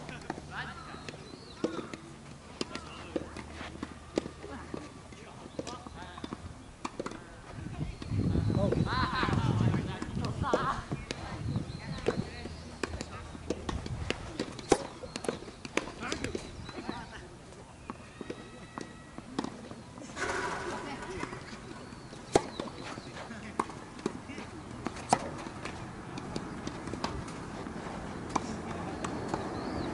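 Footsteps scuff on a hard court.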